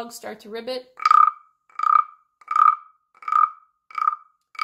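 A wooden frog is scraped with a stick, giving short croaking rasps.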